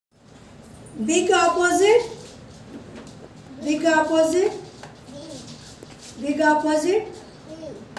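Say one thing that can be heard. A woman speaks close by in slow, drawn-out phrases, with pauses in between.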